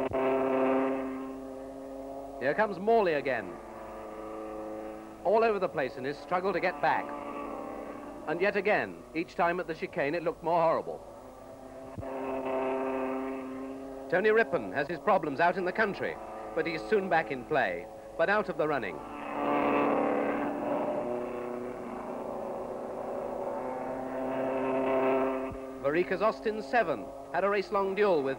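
A racing car engine drones steadily at a low hum.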